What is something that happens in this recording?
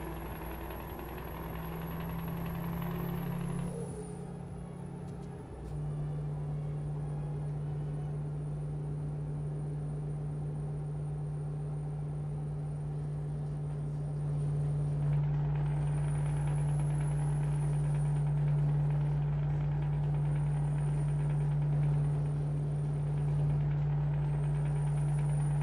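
Tyres roll along a road with a low rumble.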